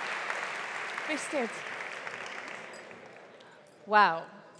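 An audience applauds.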